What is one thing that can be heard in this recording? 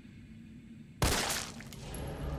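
A handgun fires a single loud shot.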